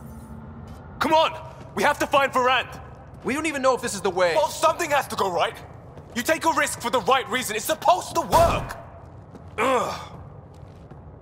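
A young man speaks with frustration, close by.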